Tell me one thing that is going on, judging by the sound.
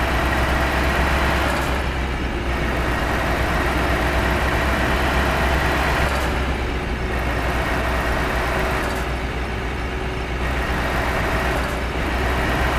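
A truck engine drones steadily as the truck drives along.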